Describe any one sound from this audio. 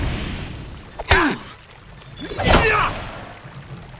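A sword swishes and strikes in a fight.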